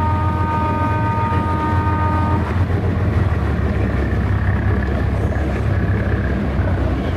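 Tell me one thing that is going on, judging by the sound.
Water splashes and rushes past a boat's hull.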